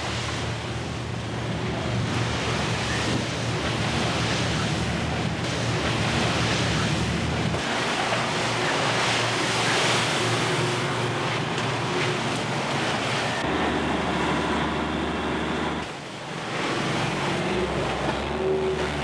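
Waves splash and crash against a ship's hull.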